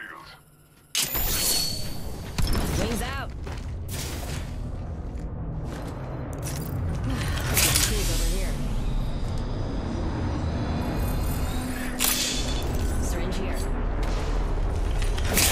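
Footsteps thud and clank on hard metal floors.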